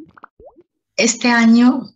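A middle-aged woman speaks calmly into a microphone over an online call.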